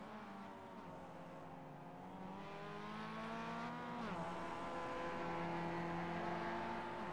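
A four-cylinder racing car engine accelerates, rising in pitch.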